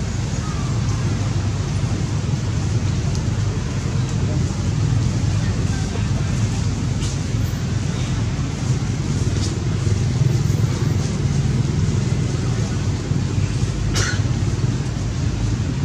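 Wind blows through leaves outdoors.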